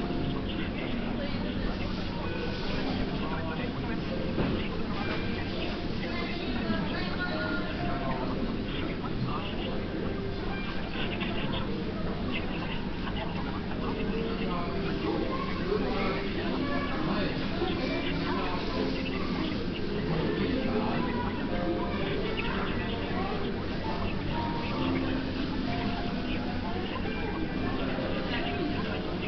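A small tool clicks and scrapes against plastic.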